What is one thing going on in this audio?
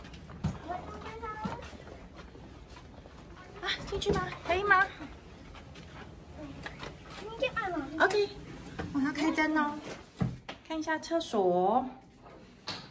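A young girl talks excitedly close by.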